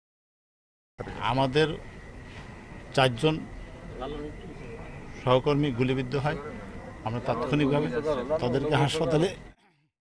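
A middle-aged man speaks into microphones, close by, with some agitation.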